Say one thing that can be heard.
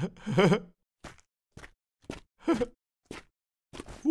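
Footsteps patter along at a quick, even pace.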